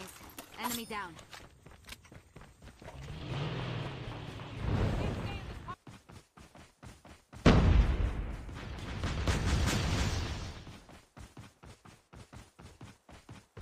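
Footsteps run over the ground at a quick, even pace.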